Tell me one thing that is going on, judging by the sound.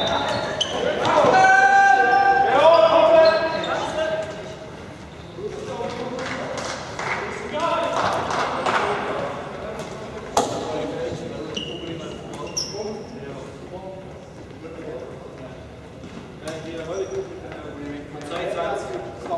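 Sticks click against a ball.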